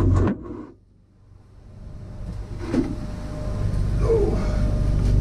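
A metal piece clanks against a steel sheet.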